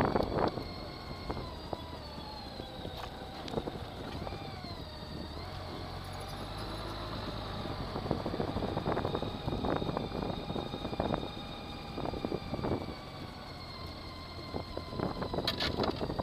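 A flat-six Gold Wing motorcycle hums as it rides slowly.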